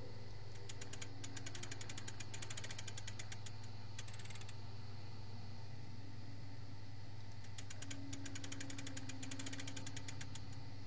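A clock ticks in quick, sharp clicks.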